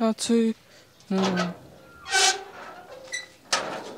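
A metal gate clanks as it is pushed open.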